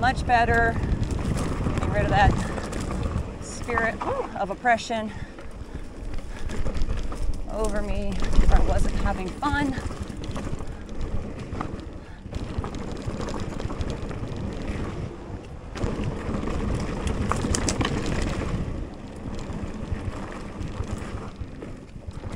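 Wind rushes past a moving bicycle rider.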